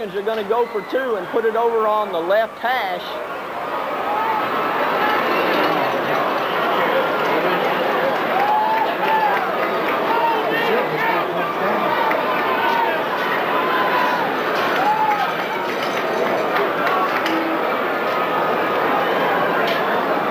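A crowd cheers and shouts loudly outdoors.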